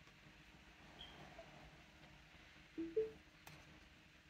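A car's touchscreen gives short electronic beeps as it is tapped.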